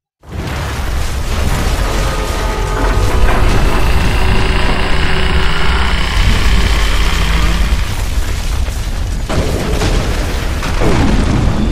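A man speaks in a low, gruff voice.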